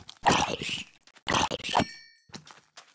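A sword strikes a zombie.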